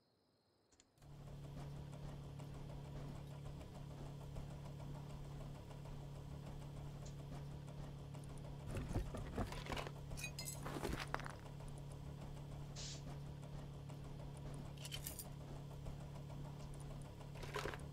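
A recycling machine switches on and hums with a steady low rumble.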